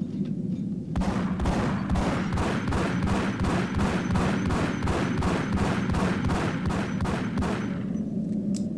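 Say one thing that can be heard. A pistol fires rapid shots in quick succession.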